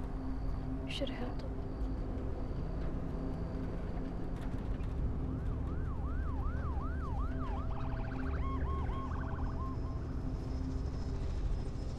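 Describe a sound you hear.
A car engine rumbles steadily while driving.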